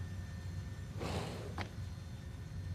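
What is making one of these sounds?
A sliding door swishes open.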